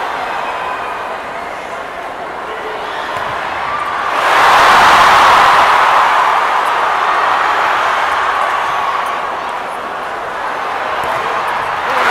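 A volleyball is struck hard with thuds.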